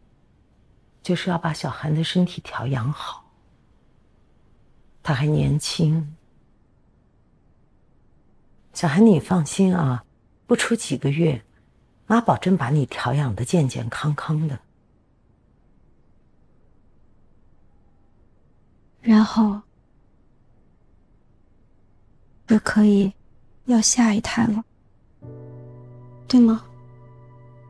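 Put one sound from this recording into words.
A middle-aged woman speaks softly and tenderly, close by.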